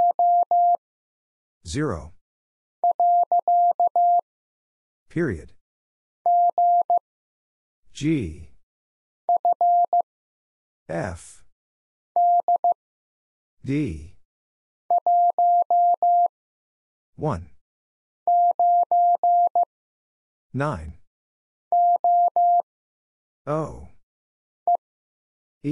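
Morse code beeps in short and long steady tones from a telegraph key.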